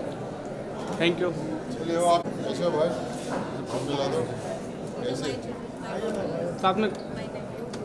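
A man talks warmly close by.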